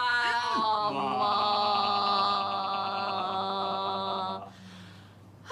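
A man holds a long sung note.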